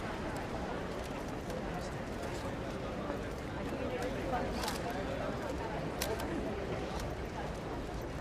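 A crowd of men and women murmurs quietly nearby, outdoors.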